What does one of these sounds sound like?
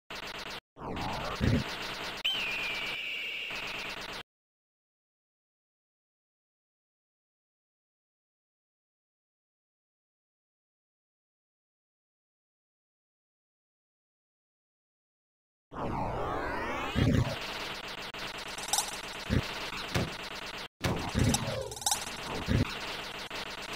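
Game music plays with electronic tones.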